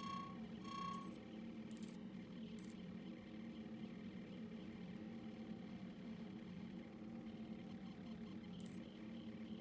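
Short electronic menu blips chirp now and then.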